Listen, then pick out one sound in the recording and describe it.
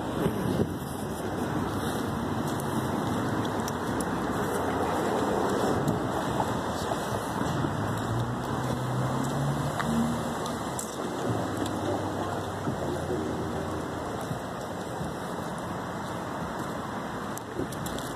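Cars pass on a wet road nearby, their tyres hissing.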